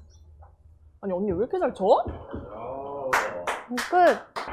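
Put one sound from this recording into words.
A young woman calls out cheerfully.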